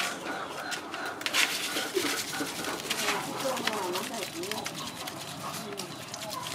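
Wet hands squelch and rub meat in a basin.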